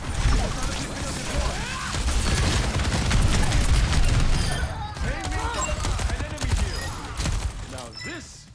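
Rapid gunfire rattles from a video game.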